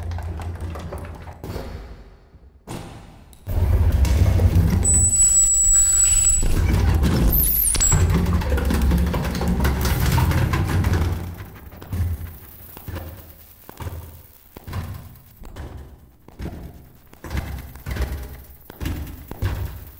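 A drummer pounds a drum kit, playing loudly with crashing cymbals.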